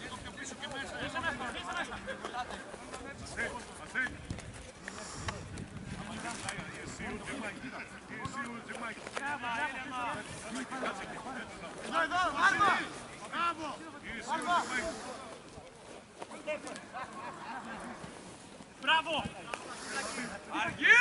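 Young men shout to each other across an outdoor football pitch.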